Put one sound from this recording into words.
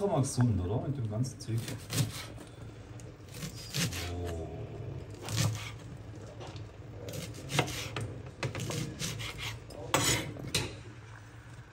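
A knife chops through vegetables on a cutting board with sharp repeated knocks.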